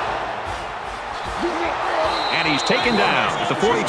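Football players collide in a tackle with a thud of pads.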